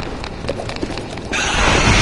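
A large beast snarls and roars.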